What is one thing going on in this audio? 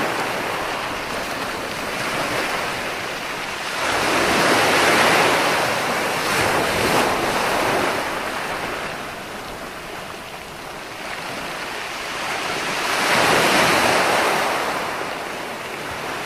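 Foamy surf washes and hisses up the beach.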